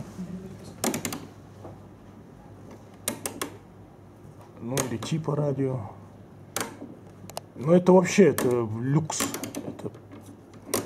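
A knob on a wall panel clicks as it is turned.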